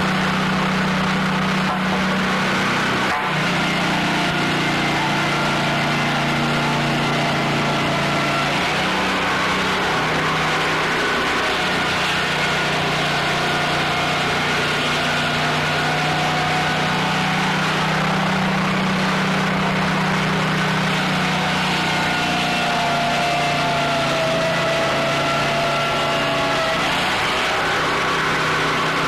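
A band saw cuts through a log with a whining buzz.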